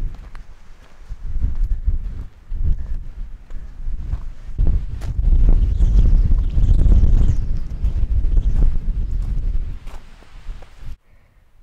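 Wind blows against the microphone outdoors.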